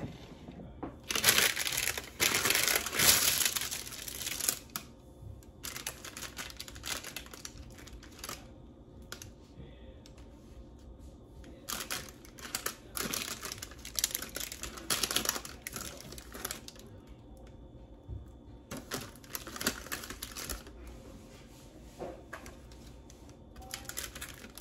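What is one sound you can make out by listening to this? Parchment paper crinkles and rustles.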